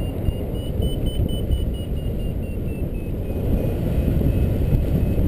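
A flight instrument beeps in quick, steady pulses that rise and then fall in pitch.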